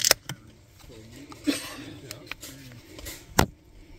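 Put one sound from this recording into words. A drink can is cracked open with a sharp hiss.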